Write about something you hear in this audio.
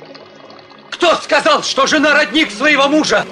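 A young man shouts loudly.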